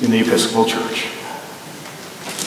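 A man speaks briefly in an echoing room.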